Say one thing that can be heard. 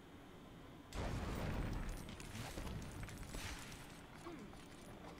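Plastic bricks burst apart with a loud clatter.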